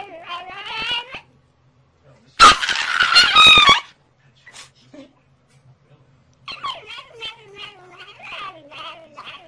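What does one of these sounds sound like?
A small dog howls and yowls up close, its pitch wavering.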